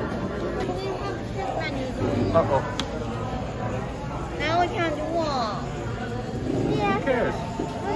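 A young girl speaks close by, sounding muffled and complaining.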